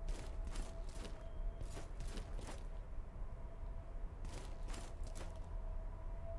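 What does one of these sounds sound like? Footsteps thud on a hard stone floor.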